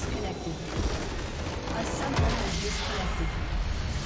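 A base crystal shatters with a loud magical burst.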